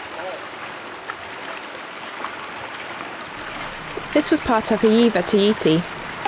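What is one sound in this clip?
Paddles splash rhythmically in water.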